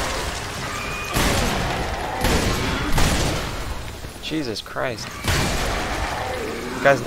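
Loud explosions boom and roar.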